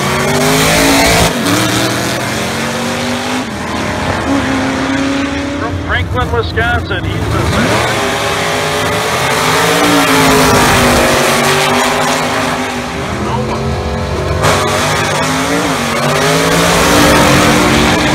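A car engine roars past up close.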